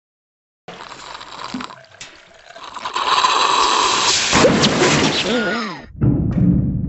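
A cartoon cat drinks noisily through a straw.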